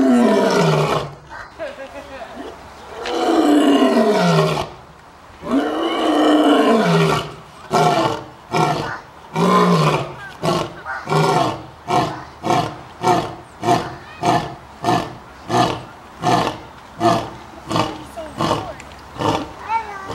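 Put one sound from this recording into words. A lion roars loudly and close by, with long moaning calls giving way to short, quick grunts that slowly fade.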